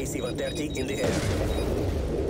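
A heavy explosion booms.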